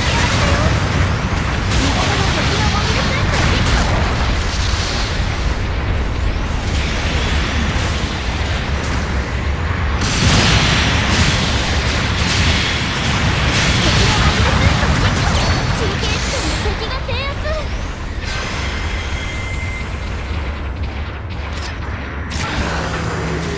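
Heavy thrusters roar steadily.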